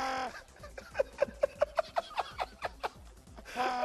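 A man laughs in bursts over a broadcast line.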